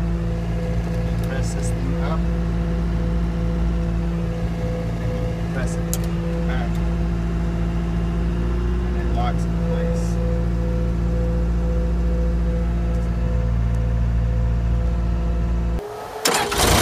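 A diesel engine idles with a steady, low rumble.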